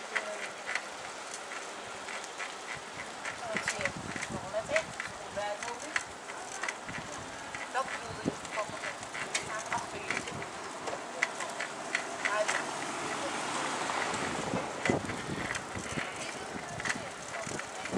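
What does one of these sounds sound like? Bicycles roll over paving stones with faint rattling and clicking.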